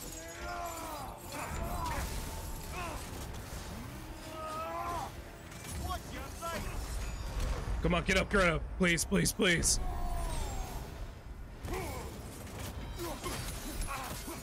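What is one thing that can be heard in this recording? Metal weapons clash and clang with sharp hits.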